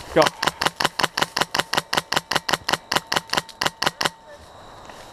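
An airsoft rifle fires a rapid burst of clicking shots.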